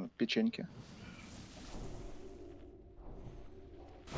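Magic spells whoosh and chime during a fantasy battle.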